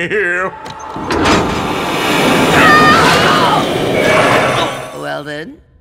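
A loud magical whoosh swirls and roars.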